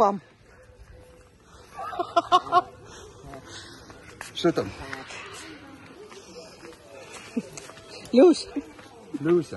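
A middle-aged man talks cheerfully close by.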